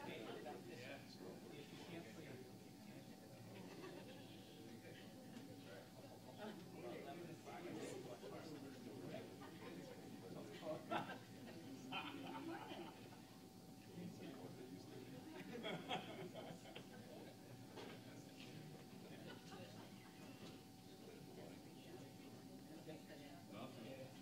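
Men and women chat quietly in a room.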